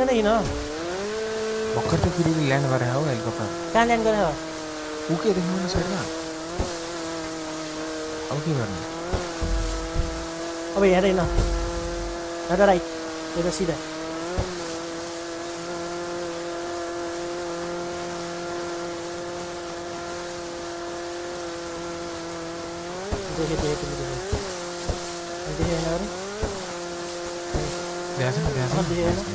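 A jet ski engine drones steadily and revs up and down.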